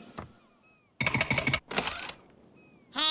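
A cartoon bird rapidly pecks on a wooden door.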